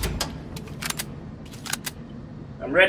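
A pistol clicks and rattles as it is handled.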